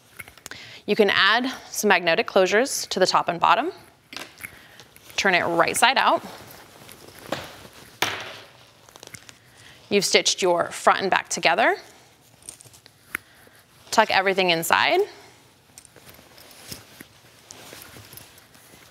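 Fabric rustles as it is folded and handled.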